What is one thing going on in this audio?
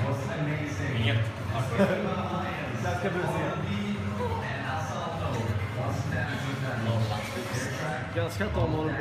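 Young men talk with animation close by, in a room with a slight echo.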